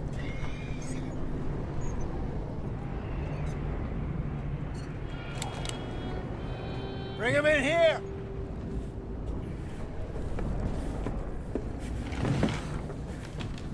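A metal lantern creaks softly as it swings.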